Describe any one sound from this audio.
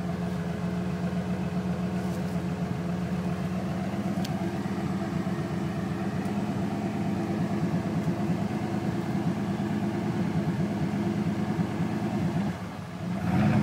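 A small model car's motor hums steadily.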